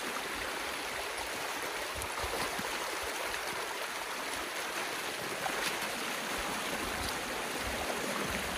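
Boots slosh through shallow water.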